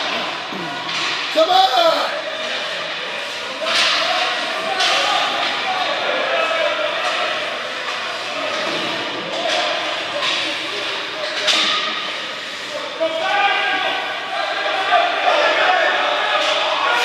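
Children shout and cheer in a large echoing hall.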